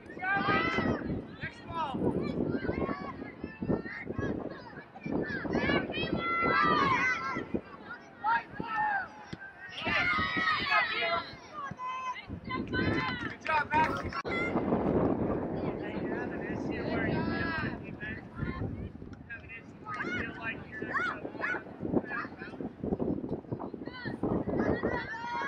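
Young women shout and call out to each other across an open outdoor field.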